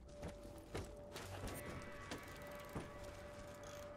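A man's footsteps crunch on gravel.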